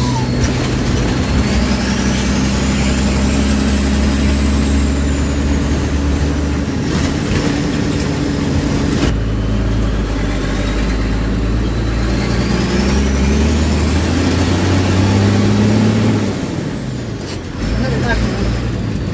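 A heavy diesel engine rumbles and changes pitch as the vehicle drives and shifts gears.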